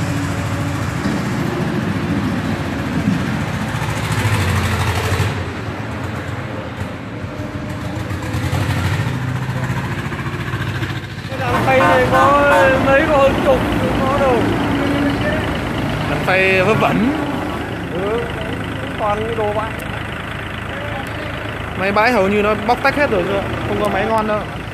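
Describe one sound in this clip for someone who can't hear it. A tractor engine runs with a steady low rumble.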